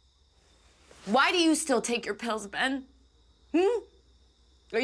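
A woman speaks up close.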